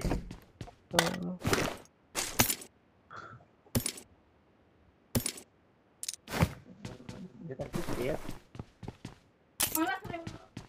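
Short clicks sound as items are picked up.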